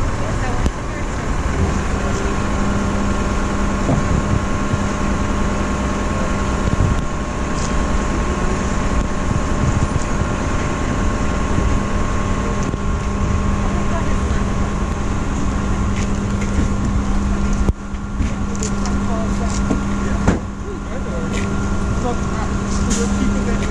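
A car engine idles nearby with a steady hum.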